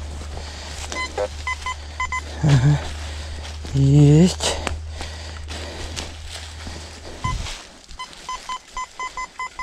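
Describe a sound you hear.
A metal detector beeps in short repeated tones.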